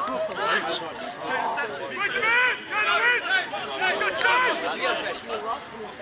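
Adult men nearby talk and call out.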